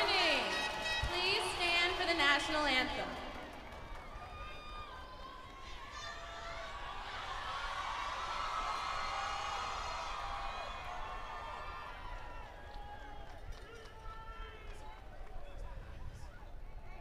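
A large crowd cheers and whistles in the distance outdoors.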